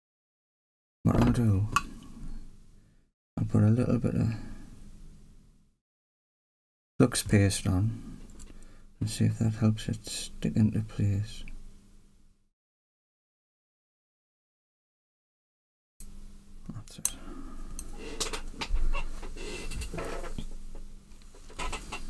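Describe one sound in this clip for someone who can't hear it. Metal tweezers tap and click against a small circuit board.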